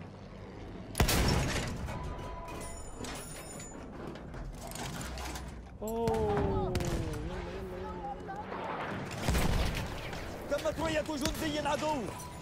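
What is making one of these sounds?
A loud explosion bursts nearby.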